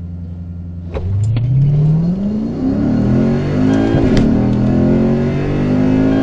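A car engine roars and revs up hard through the gears as the car launches.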